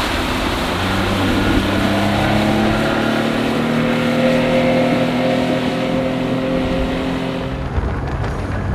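A four-stroke outboard motor on a rigid inflatable boat speeds away across the water, rising in pitch.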